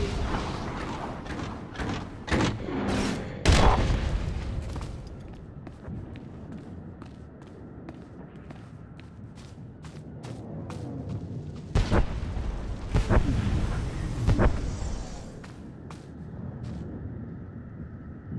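Heavy metal footsteps thud and clank.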